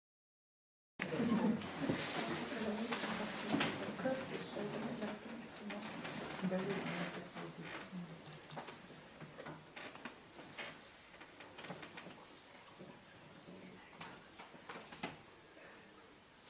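An audience murmurs and chatters quietly, then settles down.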